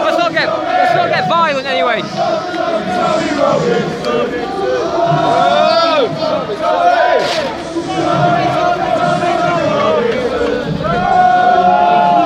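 A large crowd of men shouts and chants loudly outdoors.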